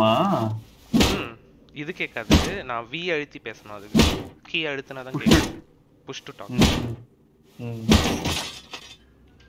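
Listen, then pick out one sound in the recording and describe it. Heavy blows thud against a metal barrel.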